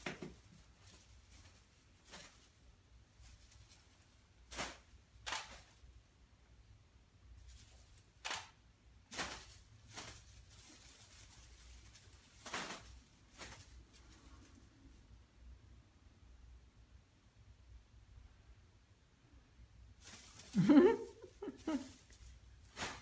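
A cat toy rattles and rustles as it is swung about in short bursts.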